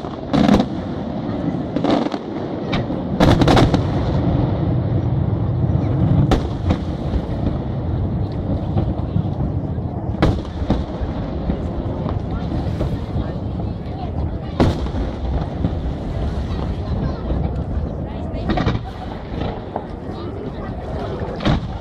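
Firework sparks crackle and fizz.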